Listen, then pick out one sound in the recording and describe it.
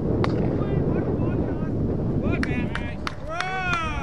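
A cricket bat strikes a ball.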